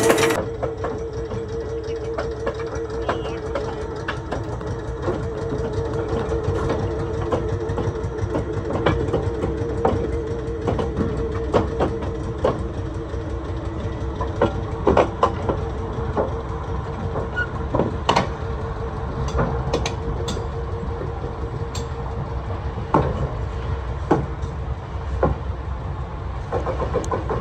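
A locomotive's motor hums steadily.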